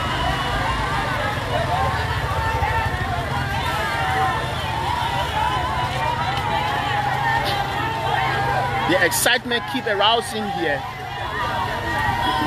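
A large crowd of men and women chatters and shouts outdoors.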